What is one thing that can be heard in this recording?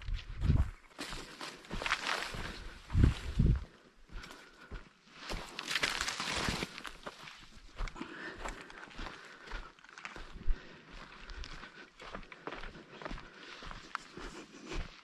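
Footsteps crunch on dry dirt and twigs.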